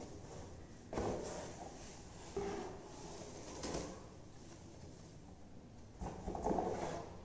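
A plastic bag crinkles and rustles as it is pulled out.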